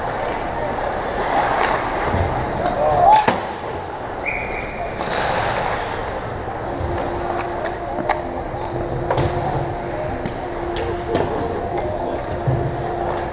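Skates scrape and carve on ice.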